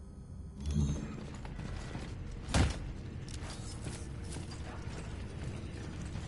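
Heavy boots thud on a metal floor.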